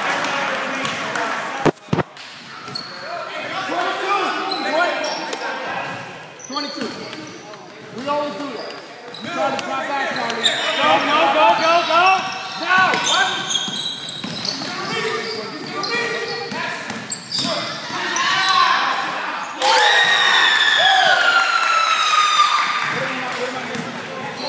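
Spectators talk and cheer in an echoing gym.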